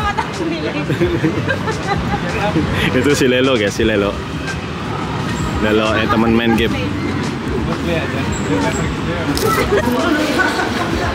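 A crowd of people chatters close by.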